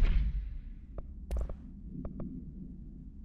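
Short electronic menu clicks tick several times.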